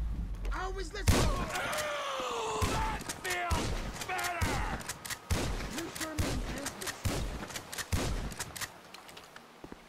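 A shotgun fires several loud blasts.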